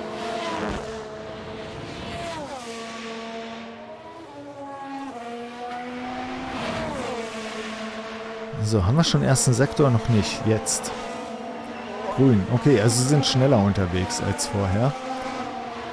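A racing car engine screams at high speed, its pitch dropping and climbing as it changes gear.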